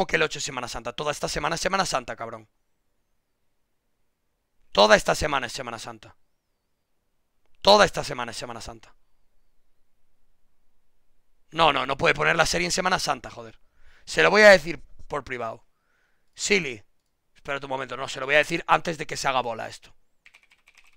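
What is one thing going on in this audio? A man talks calmly into a microphone, in short bursts with pauses.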